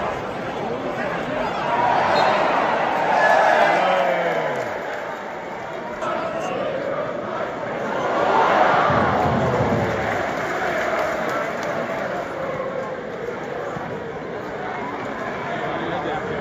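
A large football crowd chants and cheers in an open stadium.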